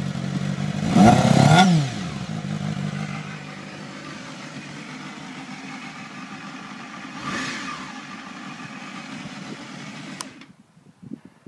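A motorcycle engine idles close by and revs sharply.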